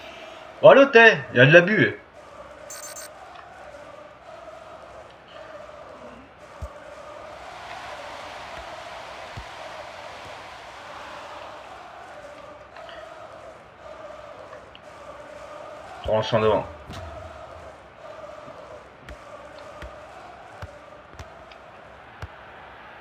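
A stadium crowd murmurs and cheers steadily in the background.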